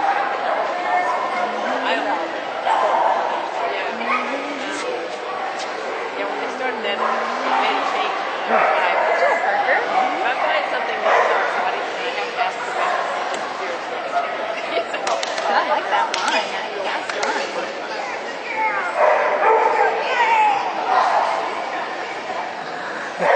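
Spectators cheer and murmur in a large echoing hall.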